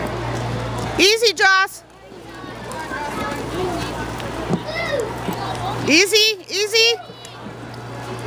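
A spectator shouts and whoops loudly.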